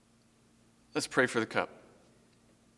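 A young man speaks briefly and calmly, close by.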